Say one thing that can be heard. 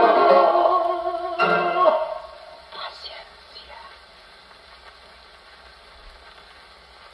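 A gramophone record crackles and hisses as it turns.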